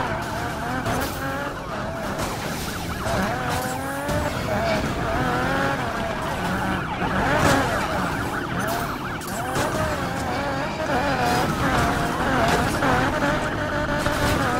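Police sirens wail close by.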